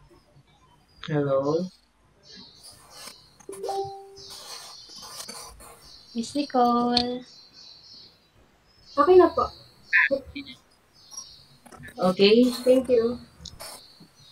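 A young girl talks with animation over an online call.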